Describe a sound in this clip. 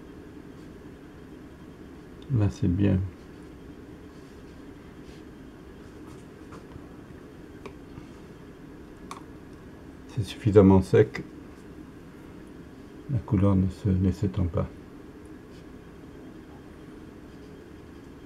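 A paintbrush softly brushes and scratches across paper.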